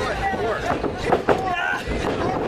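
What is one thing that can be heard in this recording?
A wrestler's hand slaps loudly against another wrestler's chest.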